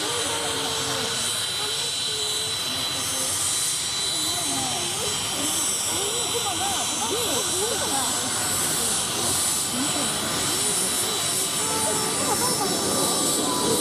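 A jet engine whines steadily as an aircraft taxis close by.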